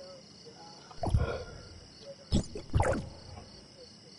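A menu opens with short whooshing clicks.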